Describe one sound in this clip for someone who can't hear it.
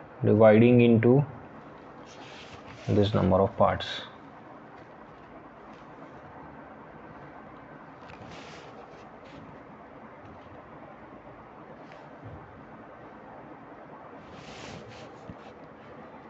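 A plastic ruler slides over paper.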